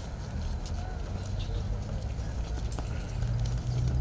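Boots tread on paving as guards march away.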